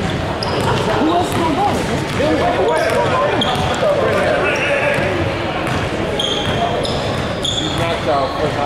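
Men shout and call out to each other in a large echoing gym.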